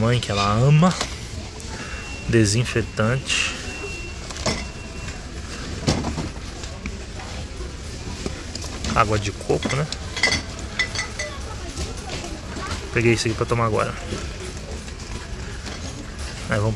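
Glass and plastic bottles clink and rattle in a wire cart.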